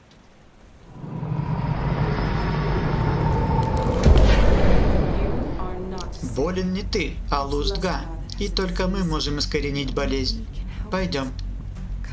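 A magic portal opens with a deep, rushing roar.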